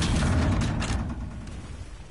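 Video game gunfire bursts loudly.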